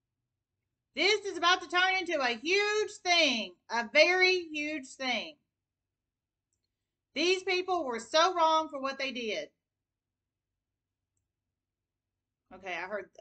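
A woman speaks calmly close to the microphone.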